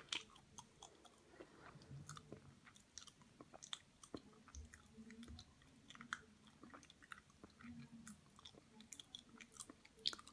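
Sticky fingers pick and squish softly at a date close by.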